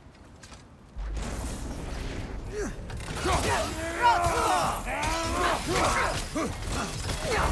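A heavy axe strikes a creature in a fight, with thuds and clashes.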